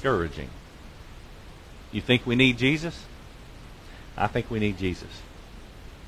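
A man speaks in short phrases through a microphone in a large echoing hall.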